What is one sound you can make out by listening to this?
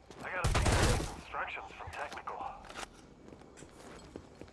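A rifle magazine is swapped with metallic clicks.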